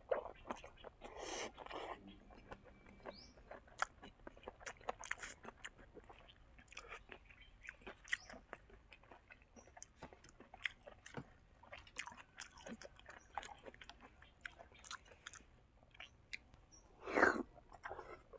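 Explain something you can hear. A young man slurps food noisily, close to a microphone.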